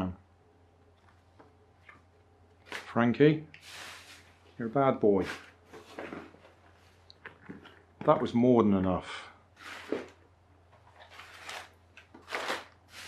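Paper rustles and crinkles.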